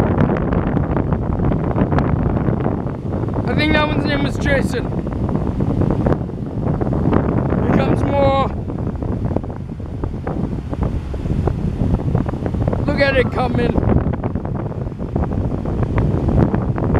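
Small waves wash onto a beach close by.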